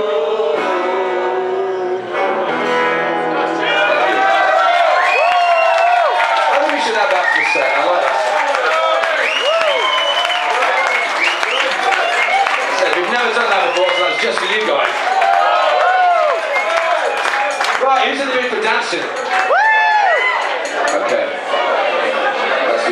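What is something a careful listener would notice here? An electric guitar plays along with the band.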